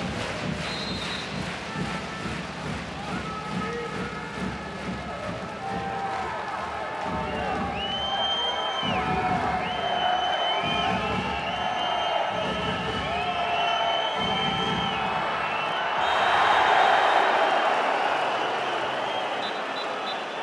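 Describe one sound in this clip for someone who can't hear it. A large crowd cheers and roars in an echoing hall, swelling louder near the end.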